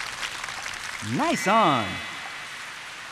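A short cheerful jingle plays.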